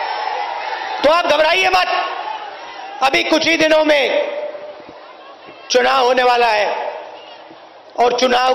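A man speaks forcefully into a microphone over loudspeakers, in short bursts.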